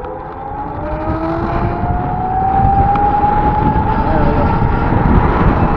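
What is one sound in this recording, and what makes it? A large truck rumbles close ahead.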